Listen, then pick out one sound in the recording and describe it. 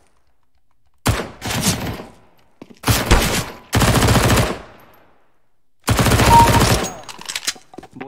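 Rifle gunfire rattles in loud bursts.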